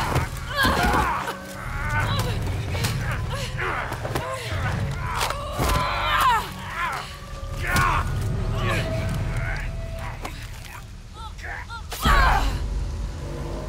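A young woman grunts and cries out with strain, close by.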